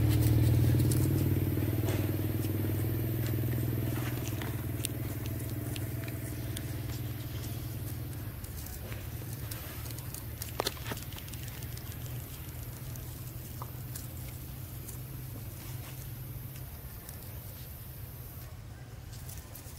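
Small clicks and rustles sound close by.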